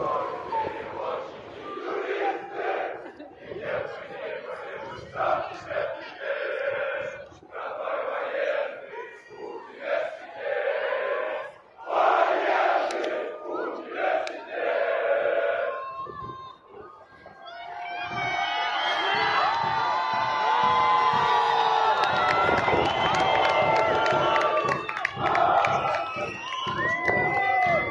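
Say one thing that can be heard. A crowd of men and women talks and calls out nearby, outdoors.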